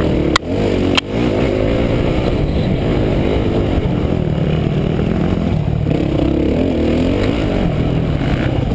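A dirt bike engine revs loudly up close, rising and falling.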